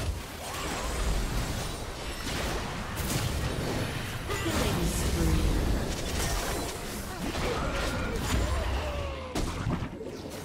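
Magic spells whoosh, crackle and burst in a fast video game battle.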